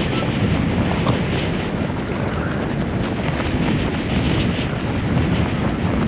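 Wind rushes past during a fast glide through the air.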